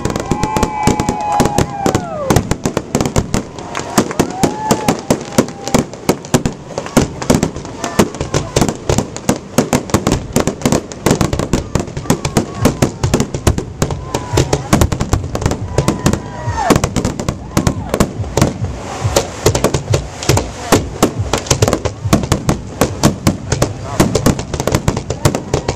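Aerial firework shells burst with sharp booms in rapid succession.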